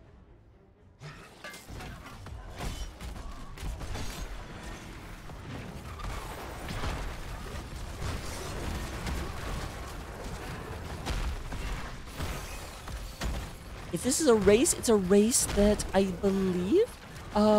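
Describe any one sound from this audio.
Game spell effects crackle and boom during a battle.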